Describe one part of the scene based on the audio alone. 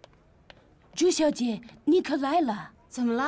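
A woman speaks with animation, close by.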